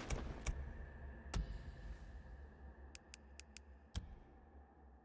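Short soft clicks sound a few times, then fade into quiet.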